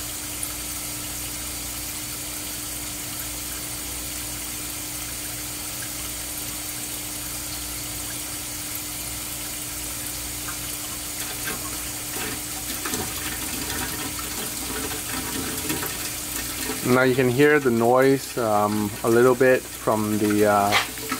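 A pump hums steadily.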